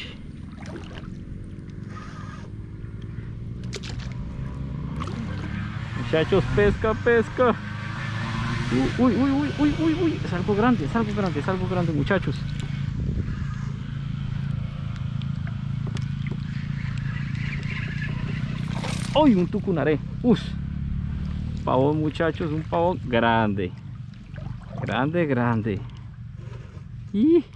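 Water laps gently against the hull of a small boat.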